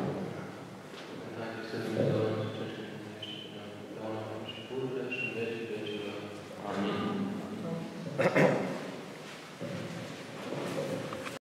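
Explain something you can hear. Men chant slowly together in a large echoing hall.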